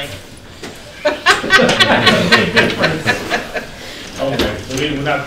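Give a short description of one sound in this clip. Middle-aged men laugh together.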